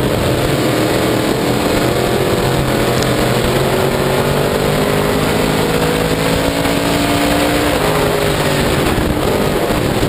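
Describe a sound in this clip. A race car engine roars loudly at high revs, close up.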